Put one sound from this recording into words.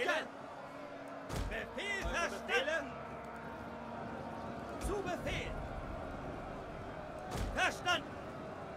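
A crowd of soldiers clashes and shouts in a steady battle din.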